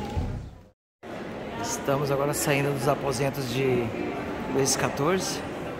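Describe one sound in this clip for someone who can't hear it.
Visitors murmur and chatter in a large echoing hall.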